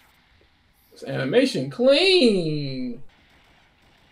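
A second man speaks in reply.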